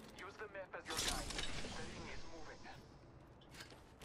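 A metal crate slides open with a rushing whoosh.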